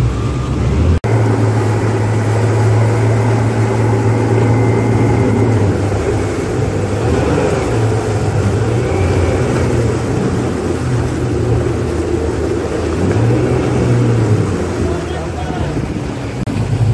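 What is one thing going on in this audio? Several outboard engines roar steadily at close range.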